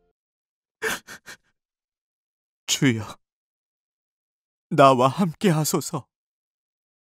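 A man sobs and whimpers in short bursts, close by.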